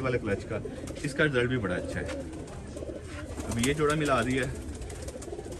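A pigeon coos in low, rolling bursts.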